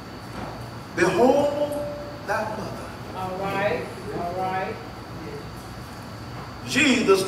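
An elderly man preaches with animation through a microphone.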